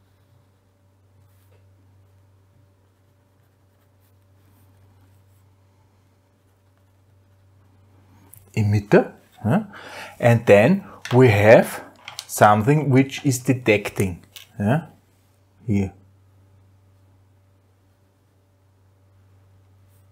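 A felt-tip pen scratches on paper.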